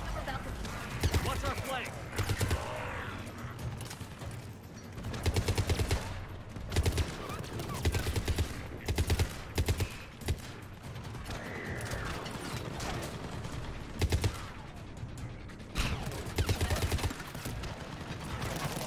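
Rapid gunfire bursts in short volleys.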